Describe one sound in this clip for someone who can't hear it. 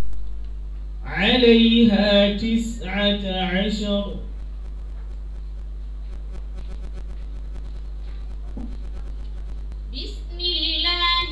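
A young woman chants melodically into a microphone, heard through loudspeakers.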